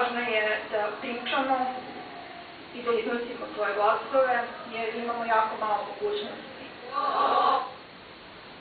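A woman speaks into a microphone, heard through a loudspeaker.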